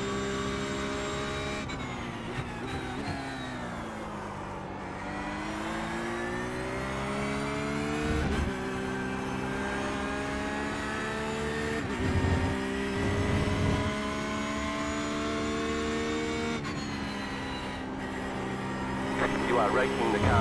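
A racing car engine roars, revving up and dropping with each gear change.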